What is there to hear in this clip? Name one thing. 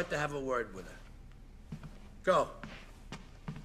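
A man speaks calmly and firmly.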